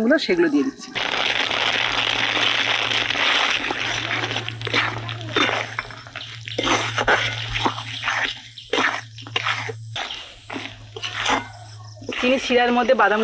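Hot syrup bubbles and sizzles loudly in a pan.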